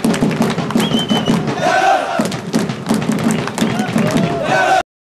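A crowd of young men cheers and chants loudly outdoors.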